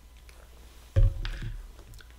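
A bottle knocks down with a thud.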